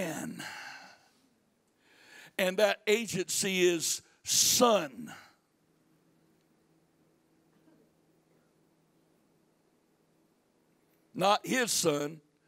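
A middle-aged man speaks with animation through a microphone and loudspeakers, pausing between phrases.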